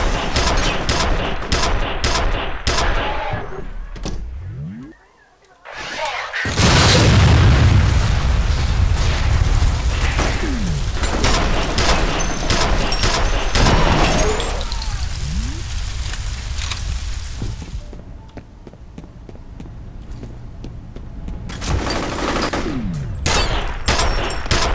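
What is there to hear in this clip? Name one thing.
Rapid gunshots ring out with a loud, echoing rumble.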